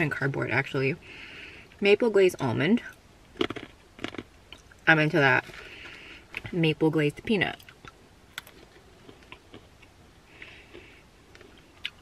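A young woman chews crunchy food.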